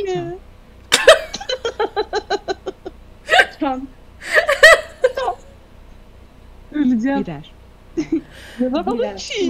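A young woman laughs heartily close to a microphone.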